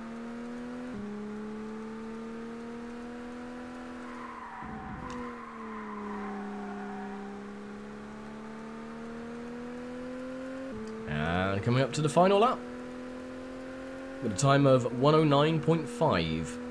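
A racing car engine drones steadily, its pitch rising and dipping with the gear changes.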